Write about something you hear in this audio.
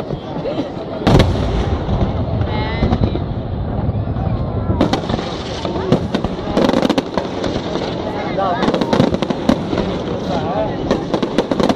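Fireworks burst and crackle overhead.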